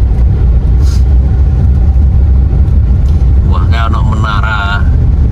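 A car's engine and tyres rumble steadily on a rough road, heard from inside.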